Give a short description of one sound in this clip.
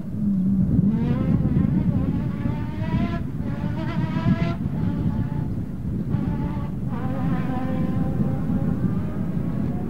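A rally car engine roars and revs hard as the car races past.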